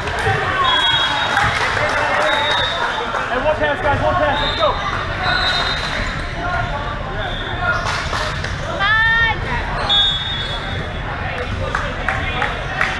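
Men shout and call out to each other in a large echoing gym.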